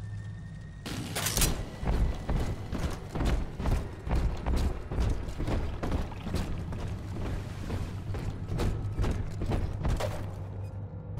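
Heavy footsteps thud steadily on a wooden floor.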